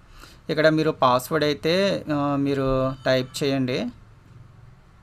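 A young man speaks calmly into a close microphone.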